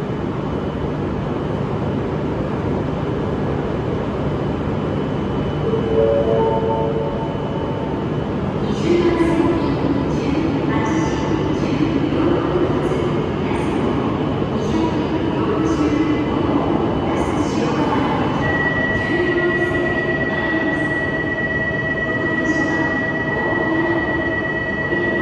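A high-speed train hums steadily while standing in a large echoing hall.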